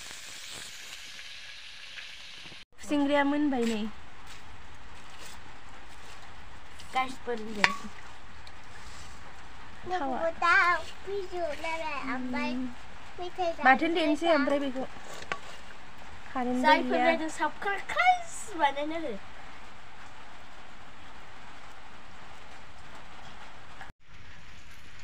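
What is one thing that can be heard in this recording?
Hot oil sizzles steadily in a pan.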